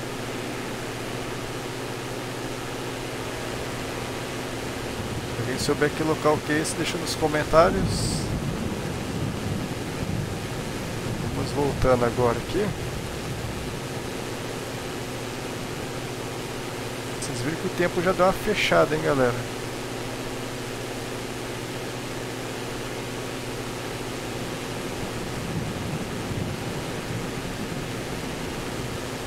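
A small propeller plane's engine drones steadily in flight.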